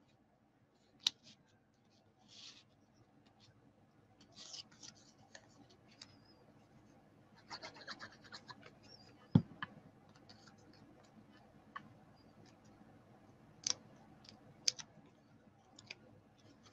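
Small paper pieces tap and click against a table.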